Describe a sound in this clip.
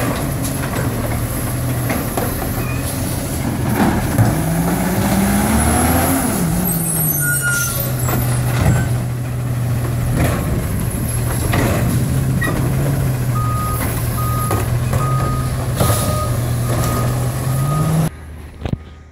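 A truck engine idles with a steady low hum.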